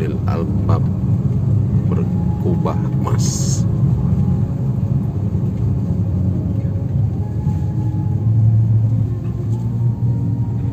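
Motorbike engines hum along a road nearby.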